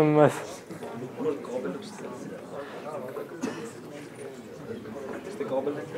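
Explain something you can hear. A young man speaks calmly to a room, heard from across the room.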